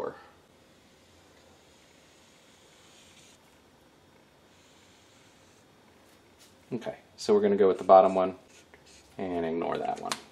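A marker scratches softly across fabric.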